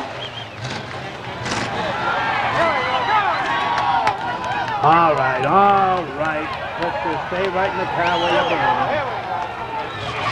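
A crowd of spectators chatters and calls out loudly nearby.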